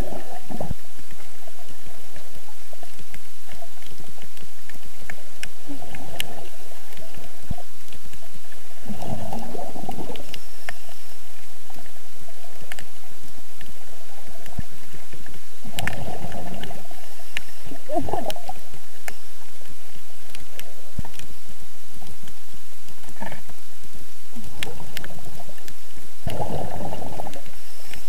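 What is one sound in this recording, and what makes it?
Scuba air bubbles gurgle and rush upward underwater in bursts.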